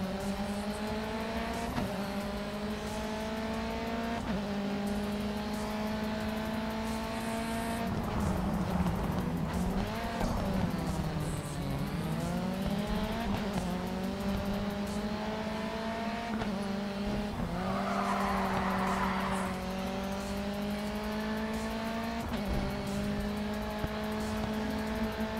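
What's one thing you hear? A racing car engine roars, rising in pitch through the gears and dropping when slowing for corners.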